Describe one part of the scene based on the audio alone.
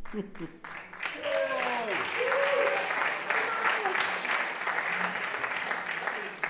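A large audience applauds loudly.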